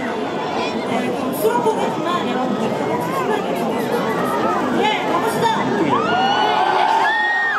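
A young woman speaks through a microphone over loudspeakers.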